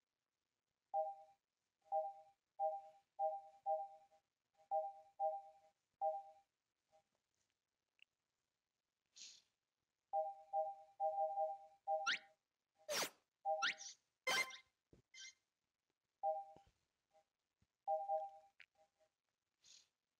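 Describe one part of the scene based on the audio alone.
Short game menu beeps chime again and again.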